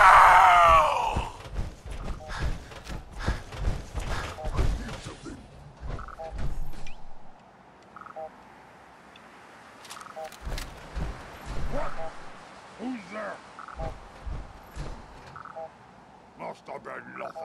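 Heavy metal footsteps stomp steadily on the ground.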